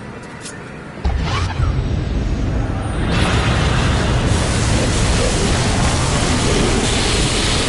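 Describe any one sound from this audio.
A magical portal hums and crackles with energy.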